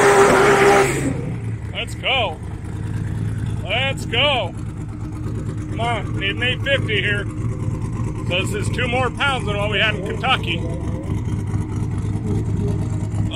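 A car engine idles with a rough, lumpy rumble.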